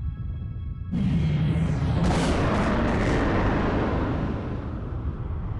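A huge explosion booms and roars, then rumbles away.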